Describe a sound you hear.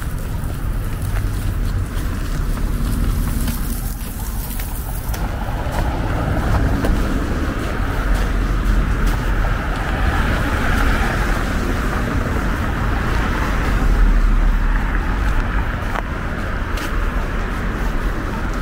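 Footsteps crunch on a snowy sidewalk.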